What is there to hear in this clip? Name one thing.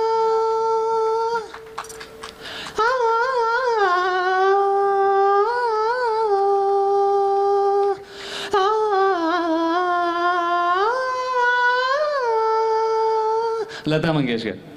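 A young man sings long held notes into a microphone, heard through loudspeakers.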